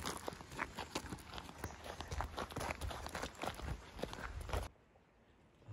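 Dogs' paws patter and crunch quickly on gravel.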